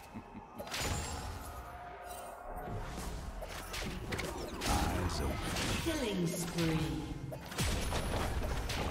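Spell blasts and weapon hits crash and whoosh in a hectic fight.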